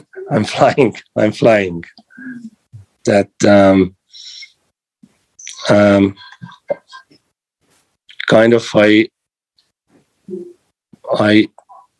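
A middle-aged man speaks casually over an online call, with pauses.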